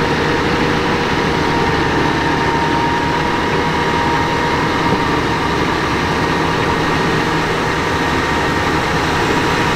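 A manure spreader's beaters whir and fling muck onto the ground.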